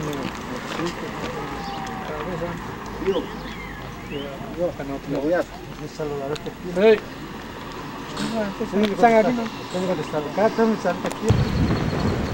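Women talk casually nearby outdoors.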